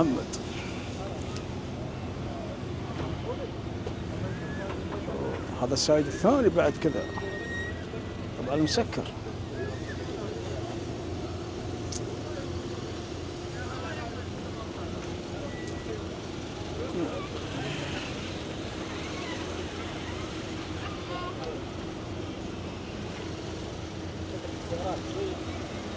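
Car engines idle with a steady low hum.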